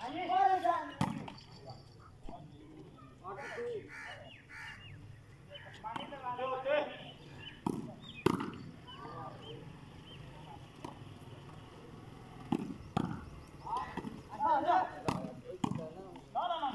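A volleyball is struck with a sharp thud.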